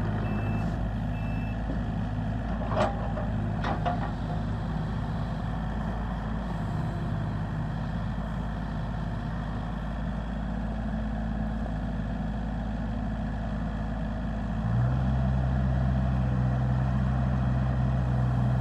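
A diesel engine rumbles steadily and revs up louder.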